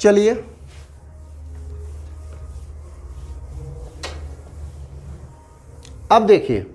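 A duster rubs across a whiteboard.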